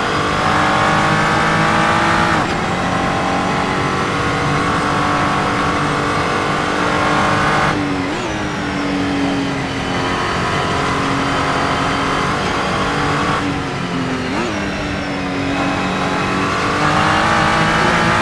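A racing car engine roars steadily, rising in pitch and dropping sharply at each gear change.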